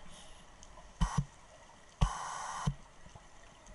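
Underwater breathing through a regulator hisses in short bursts.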